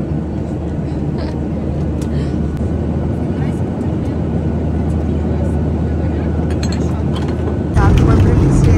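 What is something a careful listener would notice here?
A steady airplane cabin hum drones.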